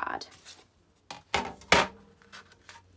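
A stiff board is set down on a table with a knock.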